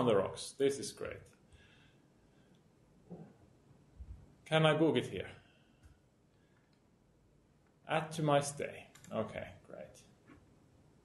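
A middle-aged man speaks calmly in short bursts.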